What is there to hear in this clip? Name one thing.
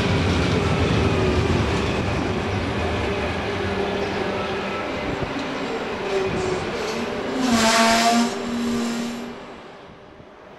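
A train rumbles and clatters past close by.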